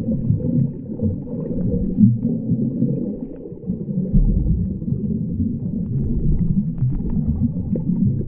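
Bubbles gurgle as swimmers kick their fins underwater.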